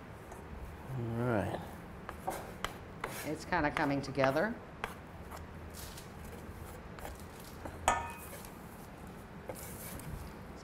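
A knife taps on a cutting board.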